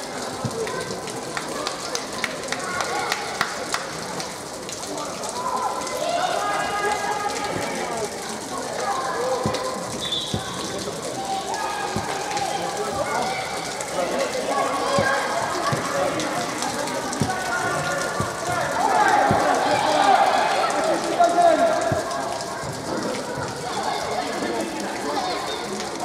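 Young players shout to each other across a large echoing indoor hall.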